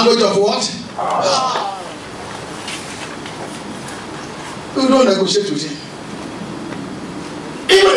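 A man preaches with animation into a microphone, in short loud bursts, in an echoing hall.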